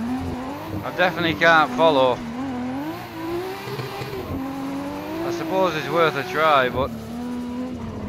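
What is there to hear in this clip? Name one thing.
Tyres screech in short bursts.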